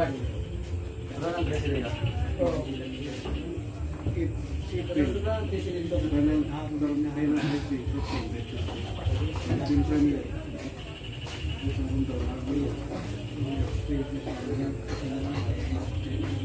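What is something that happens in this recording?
Several men talk and call out with animation nearby.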